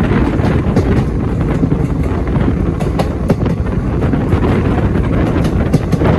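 Train wheels clatter and click over rail joints.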